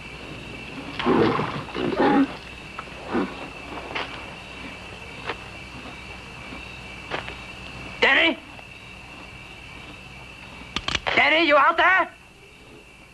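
A man speaks in a tense, raised voice nearby.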